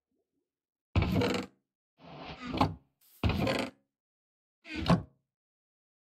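A wooden chest creaks open and thuds shut.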